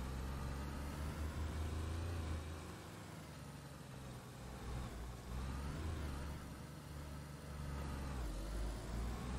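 A car engine hums low and steady, rising and falling as the car drives.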